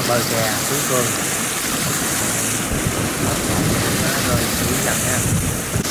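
Rough water surges and crashes against a wall.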